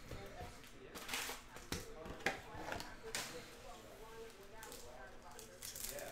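Foil card packs rustle and tap as they are stacked.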